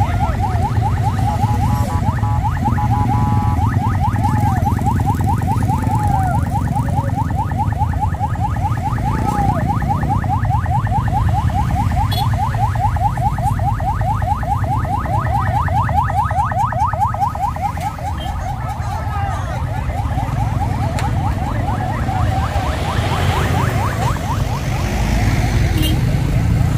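Motorcycle engines rumble as they pass slowly nearby.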